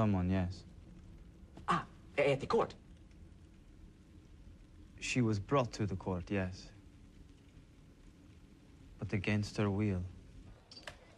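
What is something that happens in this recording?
A man speaks in a low, calm voice, with pauses between short lines.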